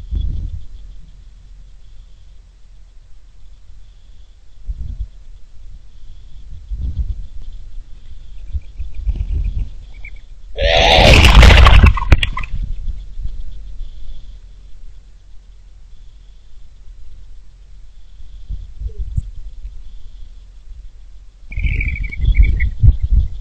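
Small birds chirp softly nearby.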